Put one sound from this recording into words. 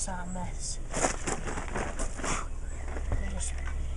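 Metal clanks as a fuel bottle is handled.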